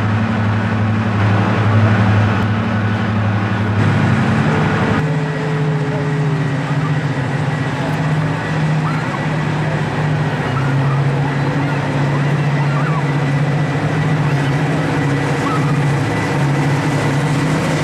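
A diesel locomotive engine rumbles with a deep, steady throb.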